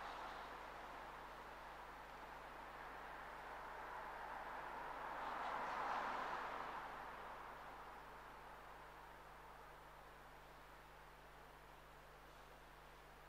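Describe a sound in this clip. A man sings a slow chant that echoes through a large reverberant hall.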